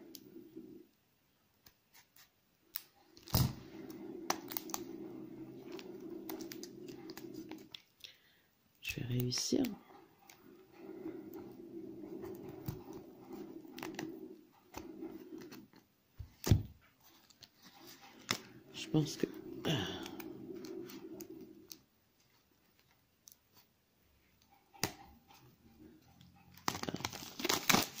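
Paper pages rustle and flip as a small book is handled.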